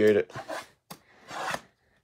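A knife slits the tape on a cardboard box.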